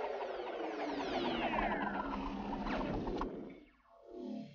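Laser blasts zap and whine in quick bursts.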